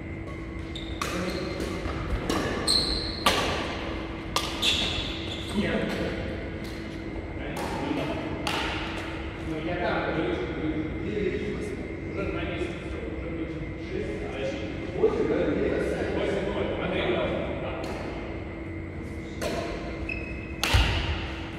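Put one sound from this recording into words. Rackets smack a shuttlecock back and forth, echoing in a large hall.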